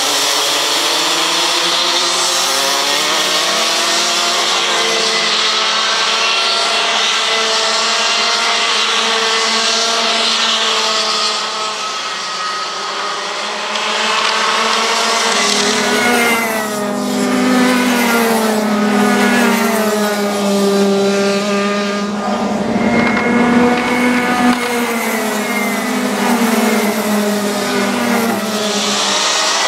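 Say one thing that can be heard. Several kart engines whine loudly, rising and falling in pitch as they race past.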